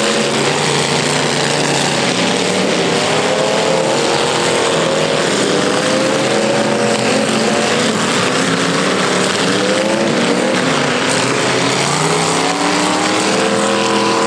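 Several car engines roar and rev loudly outdoors.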